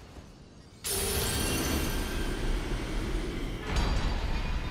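A shimmering magical surge swells with crackling sparks.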